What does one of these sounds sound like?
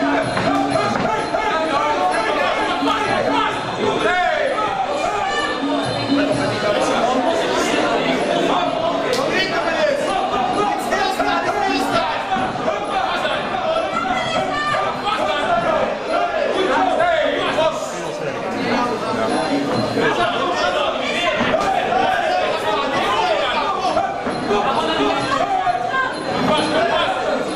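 Gloved punches and kicks thud against the fighters.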